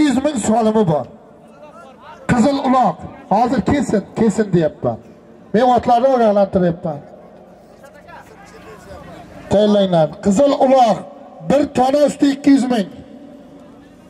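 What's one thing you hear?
A man speaks loudly close by, in short bursts.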